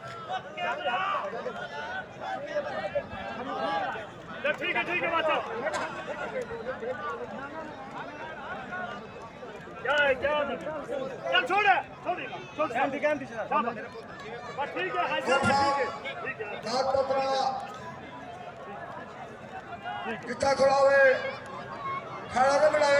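Men talk and call out nearby.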